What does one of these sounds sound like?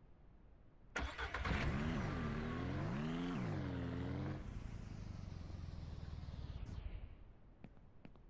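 A small vehicle's engine hums as it drives along.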